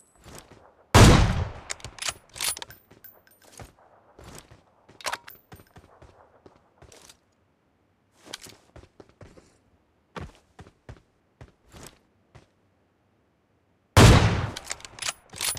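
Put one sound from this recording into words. A rifle fires with a loud, sharp crack that echoes away.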